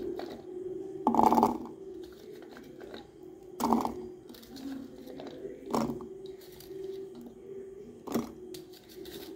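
Small onions drop into a metal jar with dull knocks.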